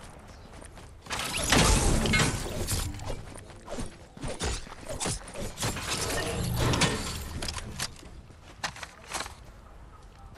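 A pickaxe swings and strikes with sharp, repeated hits.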